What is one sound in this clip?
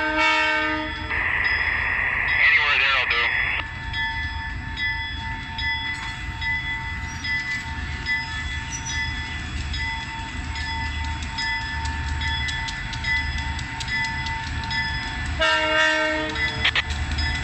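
A diesel locomotive horn blares loudly, twice.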